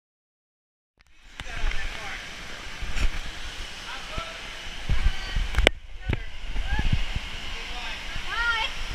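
Water rushes and splashes through an enclosed slide tube, echoing.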